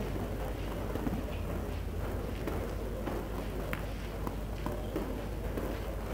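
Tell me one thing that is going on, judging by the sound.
A tennis ball is struck sharply by a racket.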